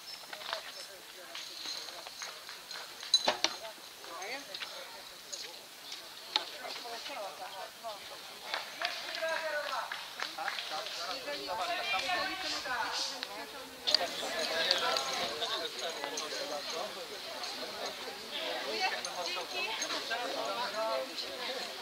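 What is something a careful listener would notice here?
Several men and women chat nearby outdoors.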